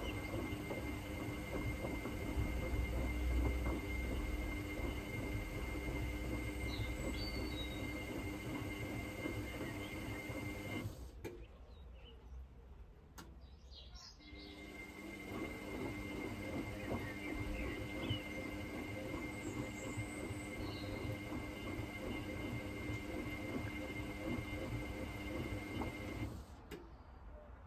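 A washing machine motor hums steadily and pauses partway.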